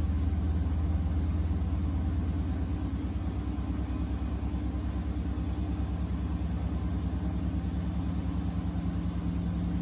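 A washing machine hums steadily as its drum spins.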